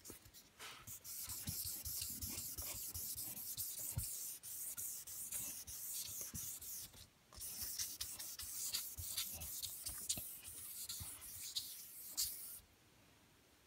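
A cloth rubs and swishes across a smooth hard surface.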